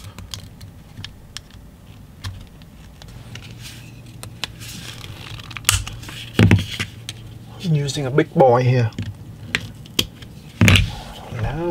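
A screwdriver scrapes and pries at a plastic casing.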